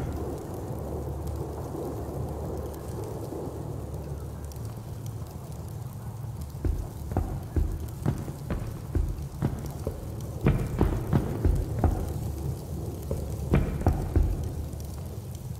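A torch flame crackles and roars softly.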